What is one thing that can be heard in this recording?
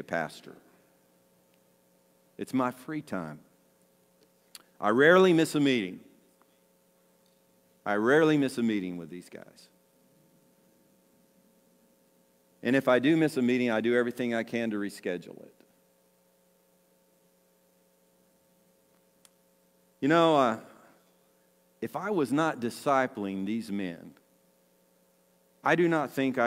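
An older man speaks calmly into a microphone, with pauses between phrases.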